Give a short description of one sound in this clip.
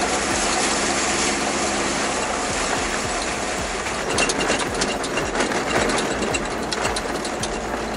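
Tyres crunch and rattle over a gravel track.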